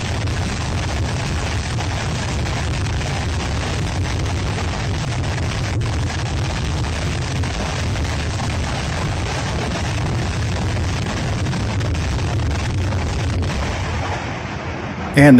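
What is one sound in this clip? Distant explosions rumble steadily across open ground.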